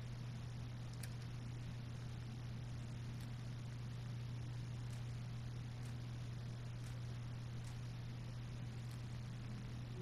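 Soft menu clicks tick now and then as selections change.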